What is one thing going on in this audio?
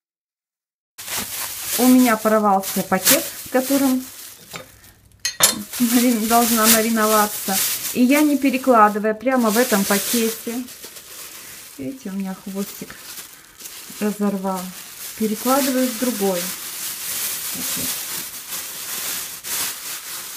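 A plastic bag crinkles as hands handle it.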